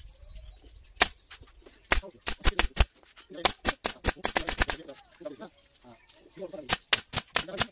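A staple gun snaps sharply, over and over.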